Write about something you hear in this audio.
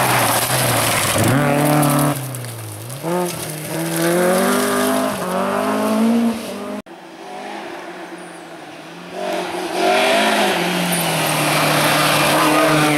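A rally car engine roars and revs up and down as the car speeds past.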